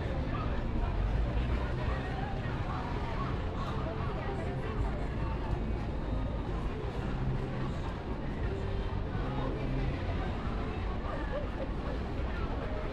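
Cars drive past on a busy street.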